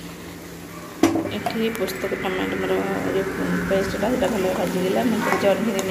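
A metal spatula scrapes and stirs food in a wok.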